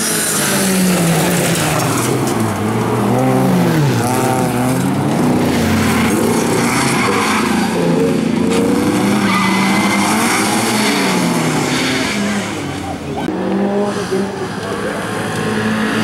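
Race car engines rev loudly, rising and falling in pitch.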